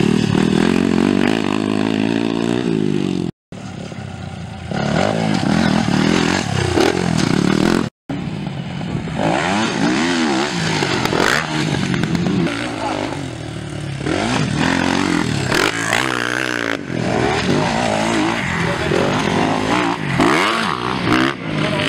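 A dirt bike engine revs loudly, rising and falling as it accelerates.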